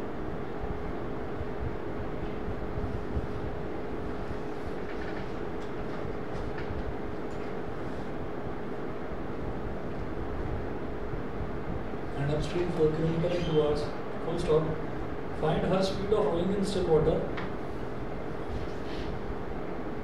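A marker squeaks and taps on a whiteboard.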